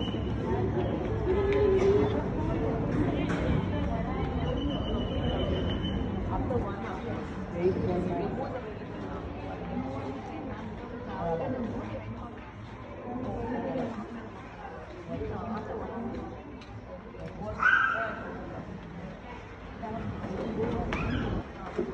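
Voices murmur and chatter in a large echoing hall.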